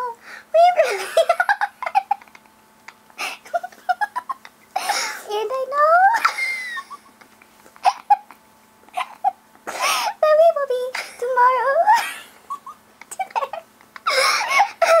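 A young woman talks and laughs with animation close to a microphone.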